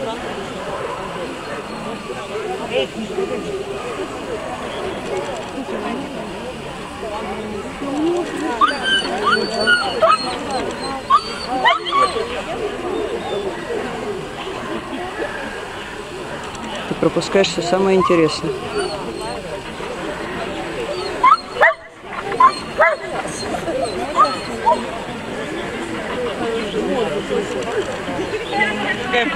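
A crowd of people chatter outdoors in the background.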